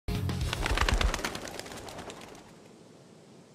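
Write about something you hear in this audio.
A bird flaps its wings.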